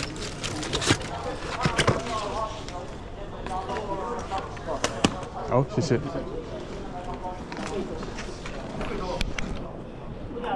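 Footsteps echo in a large hall.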